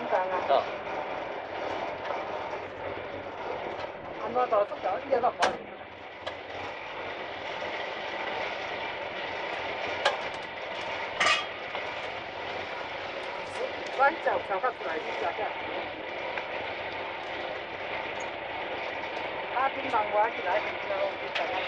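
A rail cart rumbles steadily along metal tracks.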